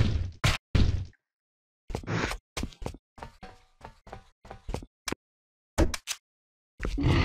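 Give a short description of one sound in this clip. Footsteps thud on hard ground and stairs.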